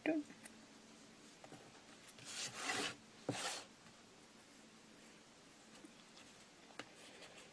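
A brush pen scratches softly on paper.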